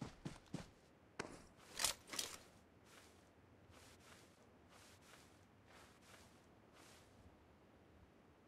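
Grass rustles as a character pushes through it.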